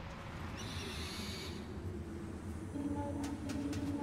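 An owl's wings beat as it flies.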